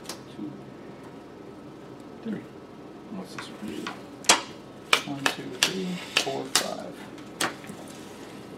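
Playing cards tap and slide on a wooden table.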